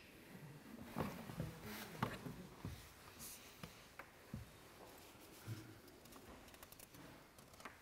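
Paper rustles as an older man handles sheets.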